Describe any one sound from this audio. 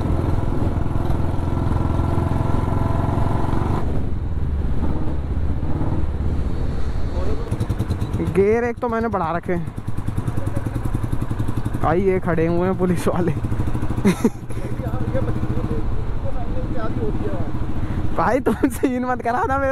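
A motorcycle engine thumps steadily close by.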